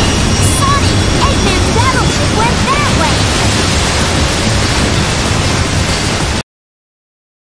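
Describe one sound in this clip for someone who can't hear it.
Water splashes and rushes loudly.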